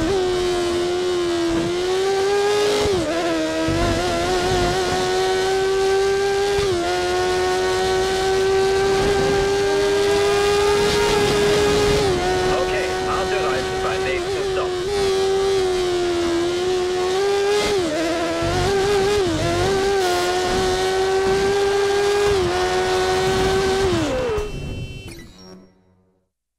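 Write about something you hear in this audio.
A racing car engine screams at high revs, dipping briefly as it shifts gears and slows for corners.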